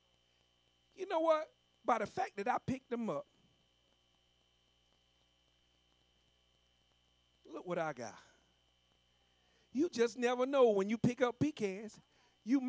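A man preaches with animation into a microphone, in short bursts.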